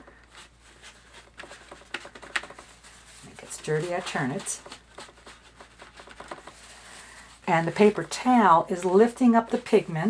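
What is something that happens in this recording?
A brush dabs and scrubs softly on paper.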